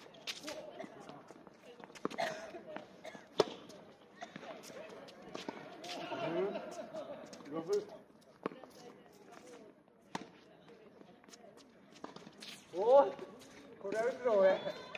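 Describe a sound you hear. Sneakers scuff and squeak on a hard court.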